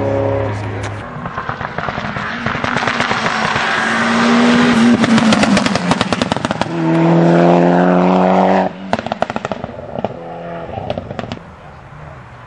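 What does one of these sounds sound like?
A second rally car engine screams up through the gears as it approaches and passes.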